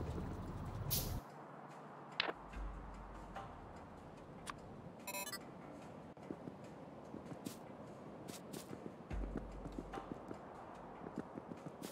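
Short game interface clicks and blips sound as a menu opens and items are picked.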